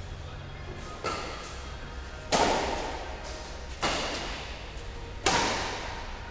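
Rackets hit a shuttlecock with sharp pops in a large echoing hall.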